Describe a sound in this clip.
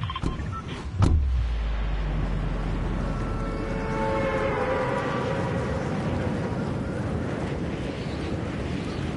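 Wind rushes past a video game character skydiving.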